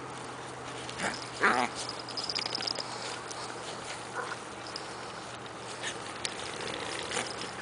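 Small dogs growl and snarl as they play-fight.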